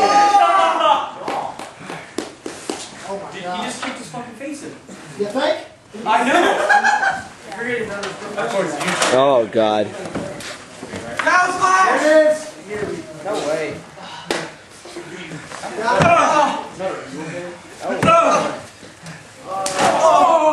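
Young men shout and yell with excitement in an echoing wooden room.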